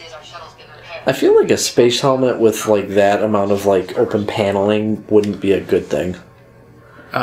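A man speaks calmly over a radio.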